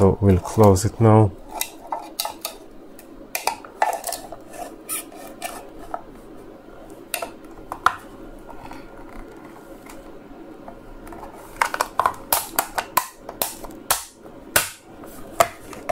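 Plastic parts click and snap as they are pressed together by hand.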